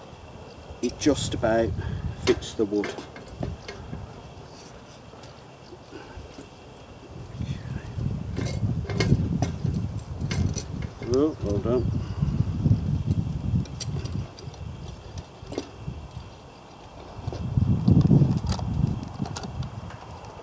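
A hand saw cuts through wood with a rasping rhythm.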